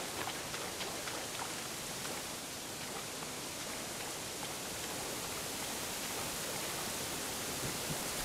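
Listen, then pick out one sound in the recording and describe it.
Water splashes steadily as someone wades through it.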